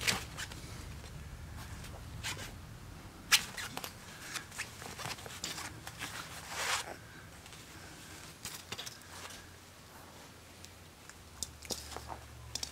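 A puppy's paws patter and scratch on a wooden floor.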